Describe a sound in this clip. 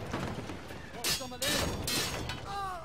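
A sword slashes with sharp swishing hits.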